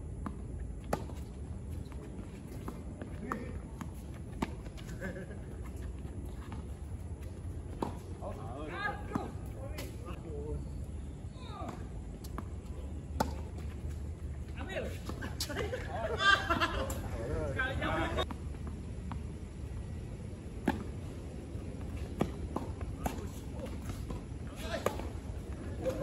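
Rackets strike a tennis ball with sharp pops, back and forth.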